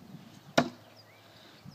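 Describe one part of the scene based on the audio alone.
An axe thuds into a wooden board.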